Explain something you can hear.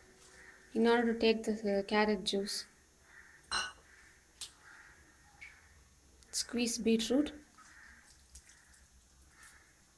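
Hands squeeze and mix soft food in a glass bowl.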